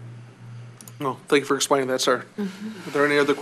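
A middle-aged man speaks into a microphone in a calm, explaining tone.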